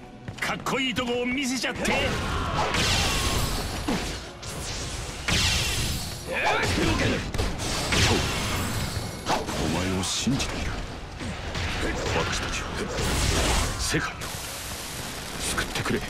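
Weapons slash and clang in a loud battle.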